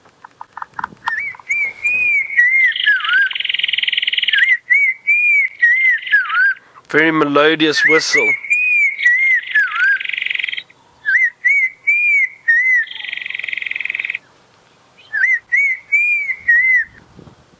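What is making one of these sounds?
An eagle gives loud, ringing, yelping calls again and again.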